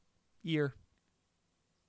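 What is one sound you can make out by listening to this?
A young man makes a short rising vocal sound into a close microphone.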